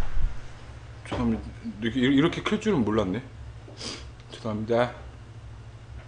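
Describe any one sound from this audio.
A young man talks calmly close to a microphone.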